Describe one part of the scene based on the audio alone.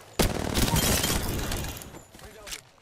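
A rifle fires in bursts in a video game.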